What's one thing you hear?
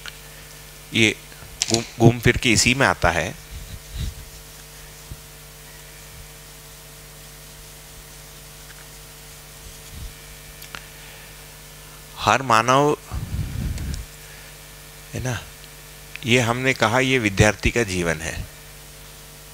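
A man lectures through a headset microphone, speaking in short bursts.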